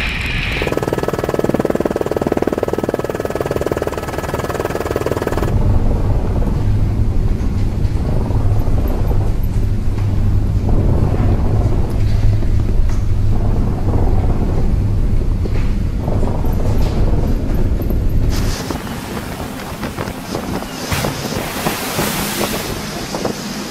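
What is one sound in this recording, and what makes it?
Strong wind roars outdoors at sea.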